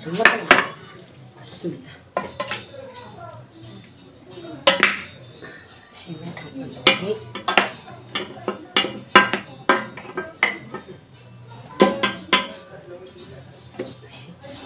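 Raw meat slaps wetly onto a plate.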